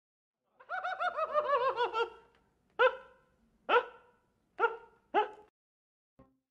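A young man laughs in a shrill, high giggle.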